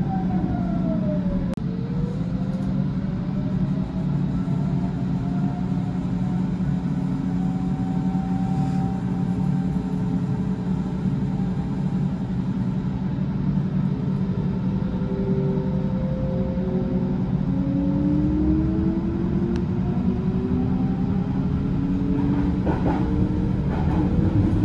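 An electric train motor whines, its pitch rising and falling.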